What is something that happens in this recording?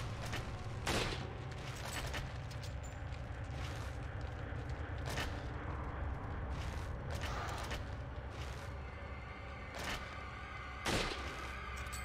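A rifle fires sharp, loud shots.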